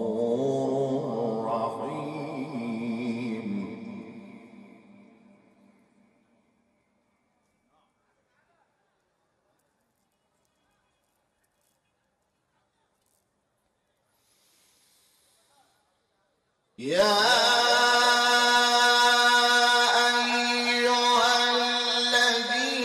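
A man chants in a long, sustained melodic voice through a microphone, echoing through loudspeakers.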